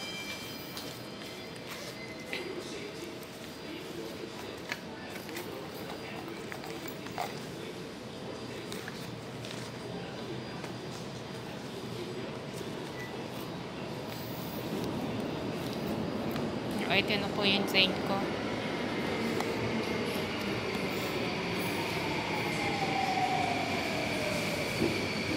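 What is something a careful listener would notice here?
A woman talks quietly close by.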